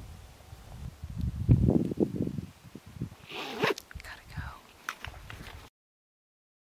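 A young woman talks outdoors with animation.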